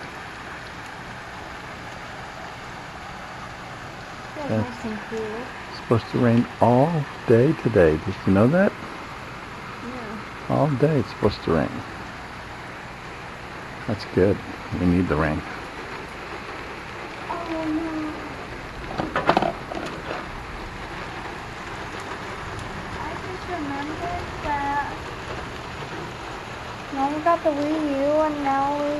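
Rain patters steadily on wet pavement outdoors.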